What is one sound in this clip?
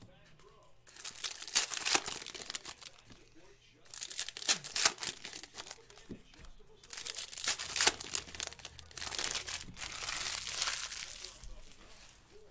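Hands tear open foil card packs with a crinkling rip.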